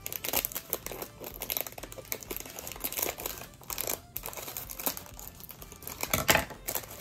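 Scissors snip through a crinkly plastic bag.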